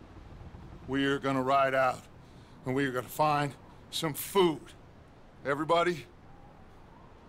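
A man speaks calmly to a group.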